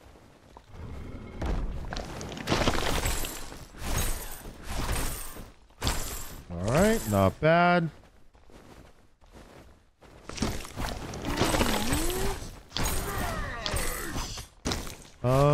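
Game fighting effects clash and whoosh.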